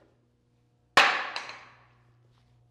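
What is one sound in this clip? A wooden board clatters onto the floor.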